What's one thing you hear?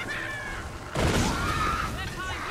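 A fiery blast bursts with a roar.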